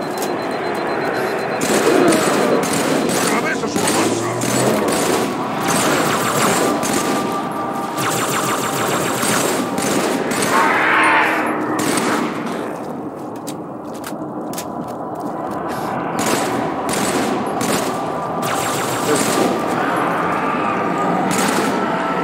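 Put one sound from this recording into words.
Rifle shots crack and boom again and again.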